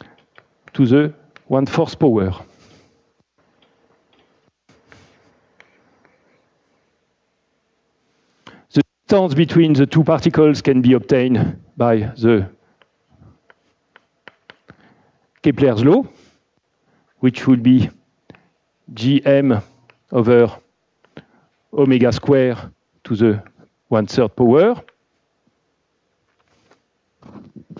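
A man lectures calmly, pausing between phrases.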